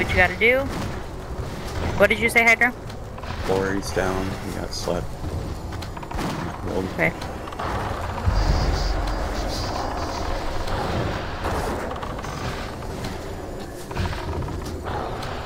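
Magic spells crackle and boom amid a noisy fight.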